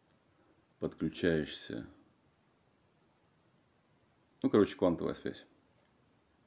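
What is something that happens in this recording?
A man speaks calmly, close to the microphone, in short phrases with pauses.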